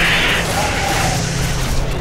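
A plasma rifle fires a quick burst of shots.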